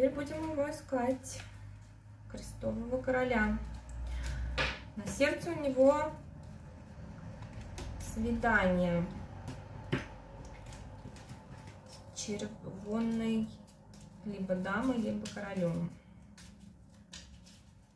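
Playing cards rustle and flick as they are shuffled by hand.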